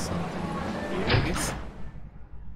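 A heavy door swings shut with a thud.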